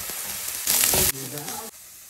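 A spatula scrapes against a pan.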